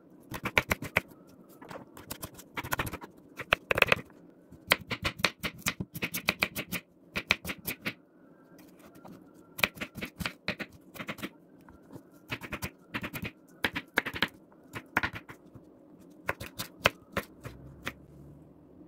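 A knife chops quickly on a wooden board.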